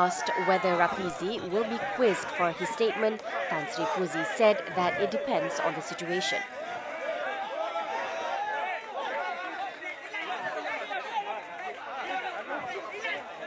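A crowd of men shouts and talks excitedly over one another close by.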